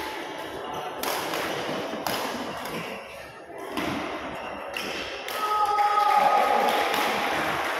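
Children shout and chatter in a large echoing hall.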